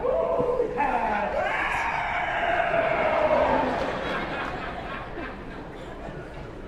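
A chorus of men and women sings loudly with long held notes.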